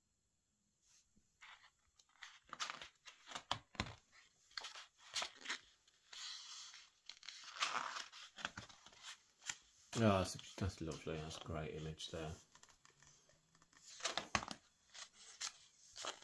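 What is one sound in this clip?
Heavy book pages rustle and flip as they are turned.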